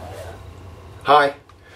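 A middle-aged man speaks briefly close by.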